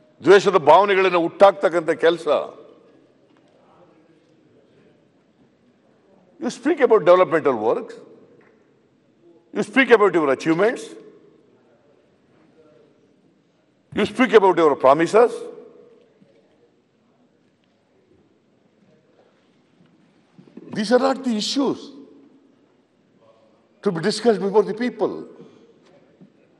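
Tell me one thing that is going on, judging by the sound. An elderly man speaks forcefully into a microphone in short bursts, with pauses between them.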